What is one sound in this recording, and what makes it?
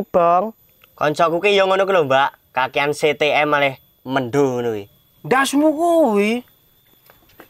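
A young man talks with animation nearby.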